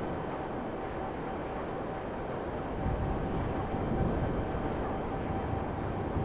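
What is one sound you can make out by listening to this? A motorbike engine roars steadily.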